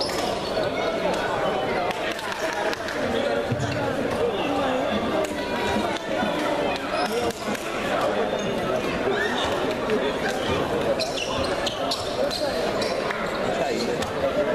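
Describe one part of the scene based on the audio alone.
Sneakers squeak on a hard floor.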